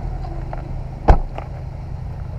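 A car door slams shut with a heavy thud.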